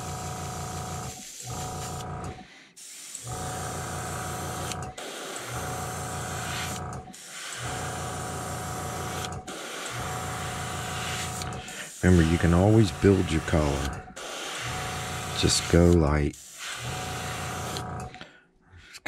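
An airbrush hisses in short bursts as it sprays paint.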